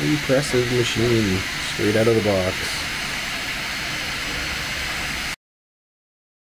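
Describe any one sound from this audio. A small cooling fan hisses steadily.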